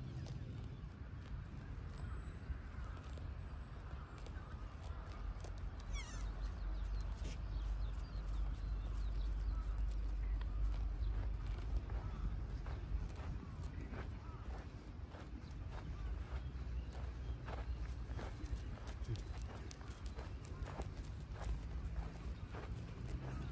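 Deer tear at grass nearby with soft crunching.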